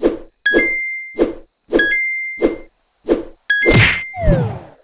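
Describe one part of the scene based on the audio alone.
A mobile game makes quick chirping flap and point sounds.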